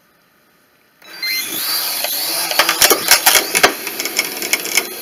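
A small drone's propellers whir loudly as it lifts off.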